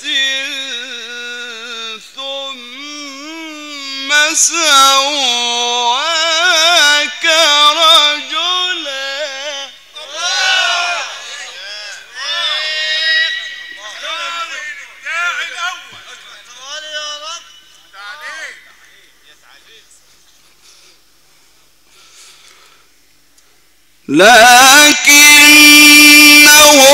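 A man chants a long melodic recitation through a microphone, heard over a loudspeaker.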